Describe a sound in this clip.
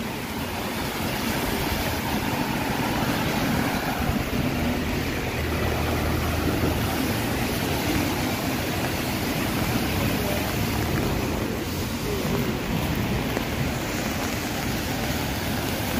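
Traffic hisses past on wet pavement.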